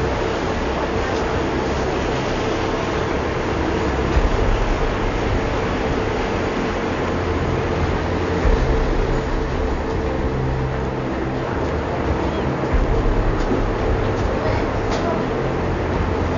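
A boat engine rumbles steadily nearby.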